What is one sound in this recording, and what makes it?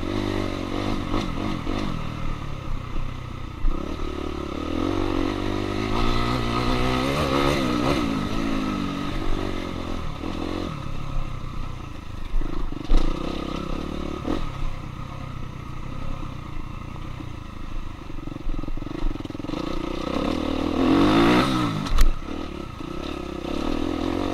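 Tyres crunch and rattle over a rough dirt trail.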